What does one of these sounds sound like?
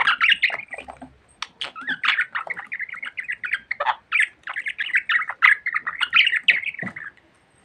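Budgies chirp and warble rapidly close by.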